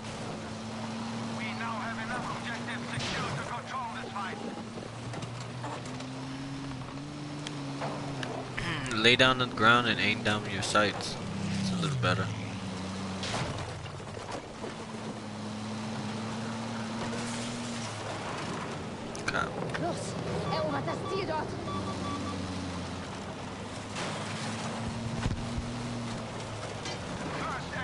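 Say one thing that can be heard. A tank engine rumbles and drones steadily.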